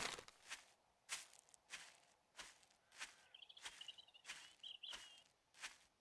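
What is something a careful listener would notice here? Footsteps rustle steadily through tall grass.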